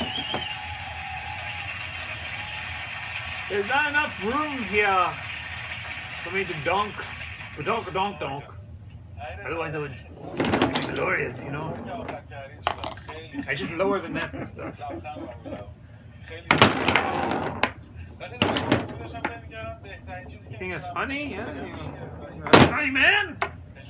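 Table football rods slide and rattle.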